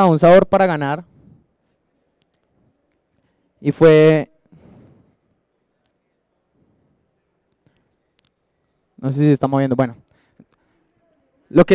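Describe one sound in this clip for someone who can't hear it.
A man speaks through a microphone in a hall, in short bursts with pauses.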